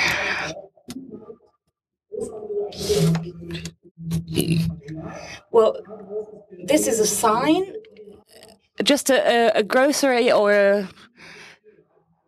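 A man speaks calmly into a headset microphone.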